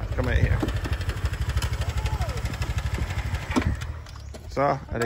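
A motorbike engine idles with a rapid low putter.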